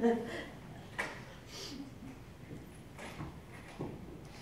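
A middle-aged woman sniffles and cries softly near a microphone.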